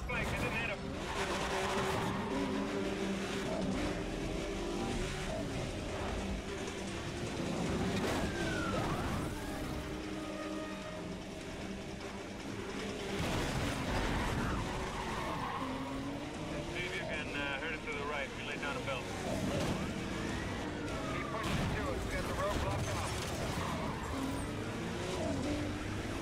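A racing car engine roars and revs steadily.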